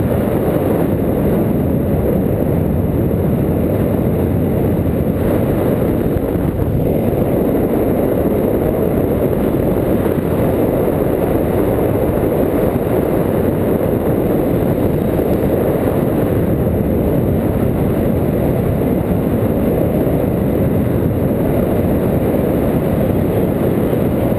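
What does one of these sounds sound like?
Strong wind roars and buffets loudly against the microphone throughout.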